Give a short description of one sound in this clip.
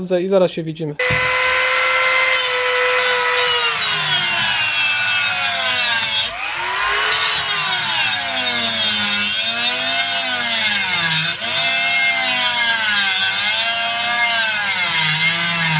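A rotary tool whines at high speed, its pitch rising and falling as it grinds metal.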